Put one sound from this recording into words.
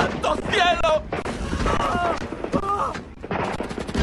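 A young man shouts urgently nearby.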